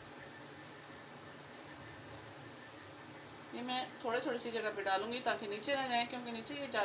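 A spoon stirs rice in a metal pot.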